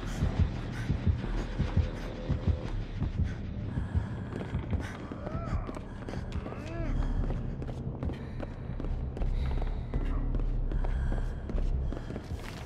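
Footsteps run quickly over wooden floors.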